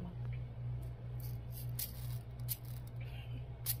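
Sprinkles rattle in a plastic shaker.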